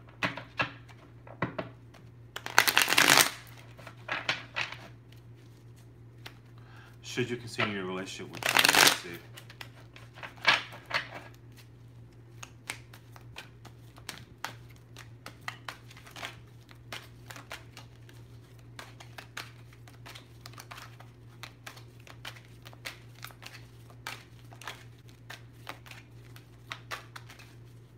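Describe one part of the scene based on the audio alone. Small objects click and tap lightly on a table.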